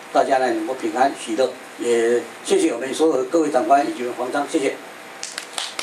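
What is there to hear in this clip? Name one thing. An elderly man speaks loudly into a microphone over loudspeakers.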